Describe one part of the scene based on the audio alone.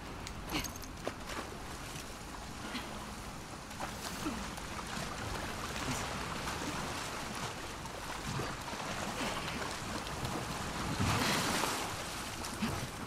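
Water splashes as a person wades through it.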